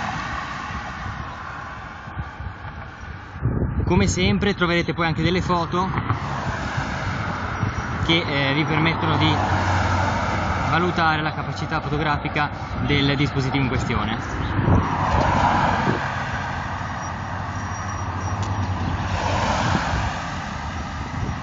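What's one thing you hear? A car drives along the road ahead.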